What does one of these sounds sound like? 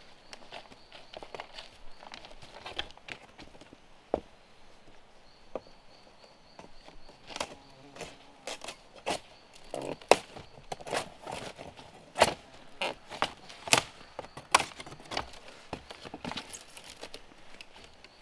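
A machete chops into bamboo with sharp, repeated knocks.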